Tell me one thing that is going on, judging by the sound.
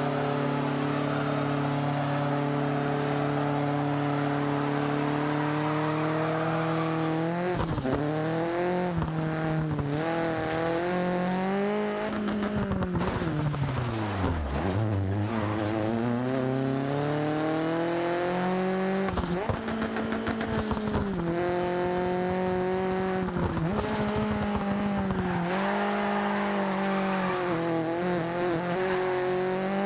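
Tyres skid and scrub on loose gravel.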